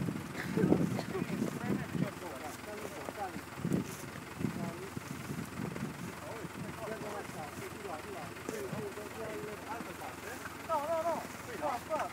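Leaves and branches rustle as olives are stripped from a tree.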